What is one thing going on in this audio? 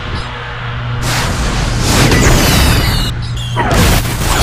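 A missile roars past with a rushing whoosh.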